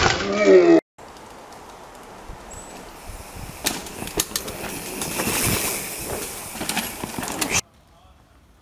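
Bicycle tyres crunch over a dirt trail.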